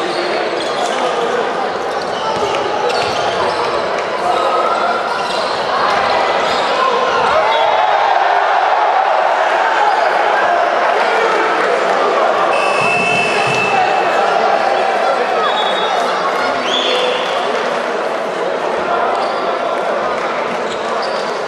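A large indoor crowd cheers and chatters, echoing through a big hall.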